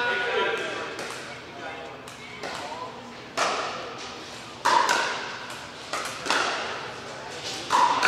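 Paddles pop against a plastic ball in a large echoing hall.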